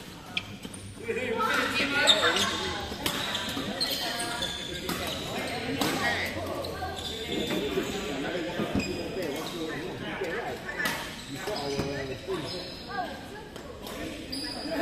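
Voices chatter and echo in a large hall.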